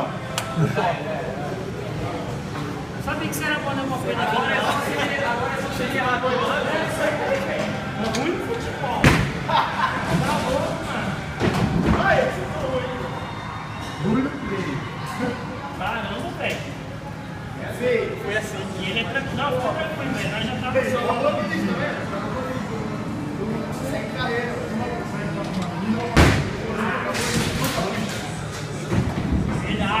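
A young man talks and laughs nearby in an echoing hall.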